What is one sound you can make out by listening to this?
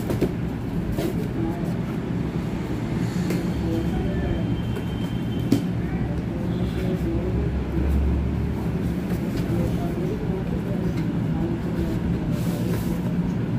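Cardboard flaps rustle and scrape as a box is opened by hand.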